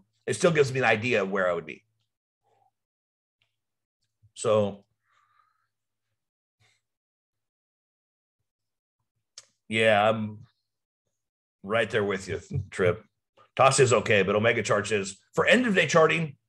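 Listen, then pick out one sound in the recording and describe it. A man speaks calmly and closely into a microphone, in bursts with pauses.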